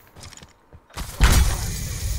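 A grenade is thrown.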